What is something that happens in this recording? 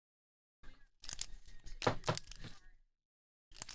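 A foil wrapper crinkles in hands.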